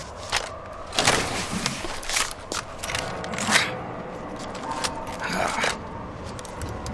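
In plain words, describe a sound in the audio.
A heavy metal gun clanks as a man lifts it.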